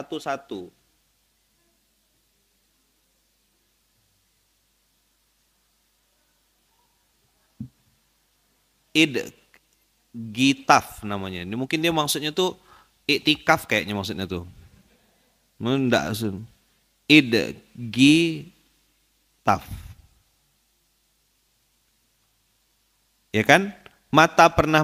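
A man speaks calmly into a microphone, close by, in short phrases with pauses.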